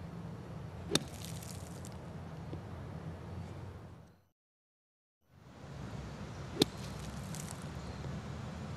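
Sand sprays and patters down.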